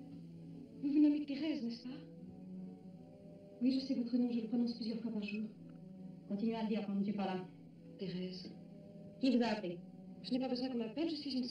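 A young woman speaks quietly and earnestly close by.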